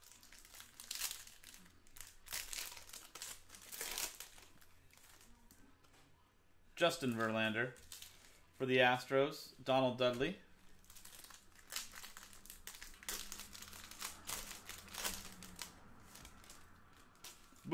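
Foil wrappers crinkle and tear as hands rip open card packs.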